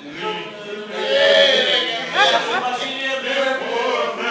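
A middle-aged woman laughs loudly close by.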